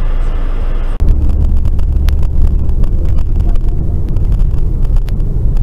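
Road noise rumbles loudly inside a moving car.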